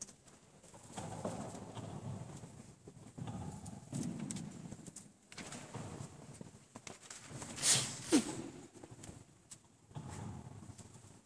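An elderly man speaks quietly in an echoing hall.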